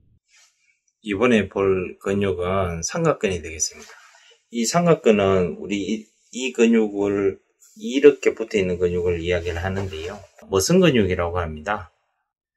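A middle-aged man speaks calmly and closely to a microphone.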